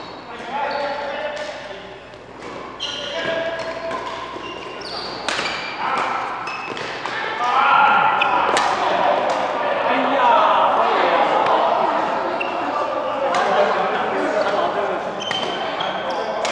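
Badminton rackets sharply strike a shuttlecock in a large echoing hall.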